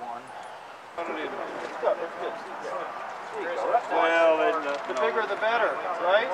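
Several adult men and women talk casually nearby outdoors.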